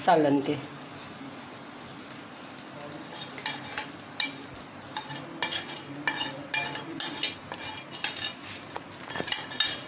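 A spoon taps and scrapes against a ceramic bowl.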